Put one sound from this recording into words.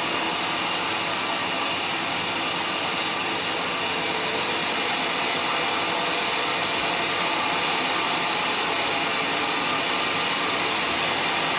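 A sawmill engine drones loudly throughout.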